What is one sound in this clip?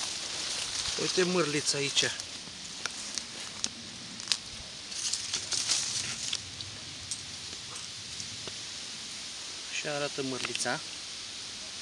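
A man speaks briefly and calmly nearby.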